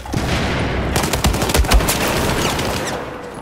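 Gunshots crack in quick bursts nearby.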